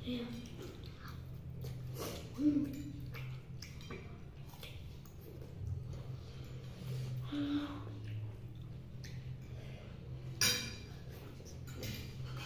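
Forks clink and scrape against plates.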